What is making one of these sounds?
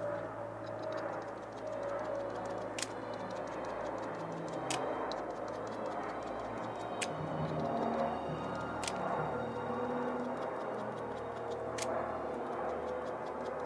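Fingers rub and dab on a painted surface.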